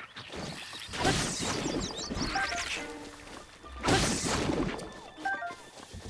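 A sword swings and strikes with a sharp burst.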